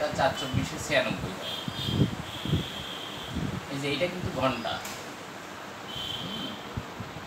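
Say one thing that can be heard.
A man speaks calmly and steadily, close by.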